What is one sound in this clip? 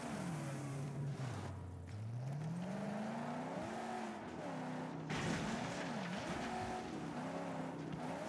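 Gravel crunches under rolling tyres.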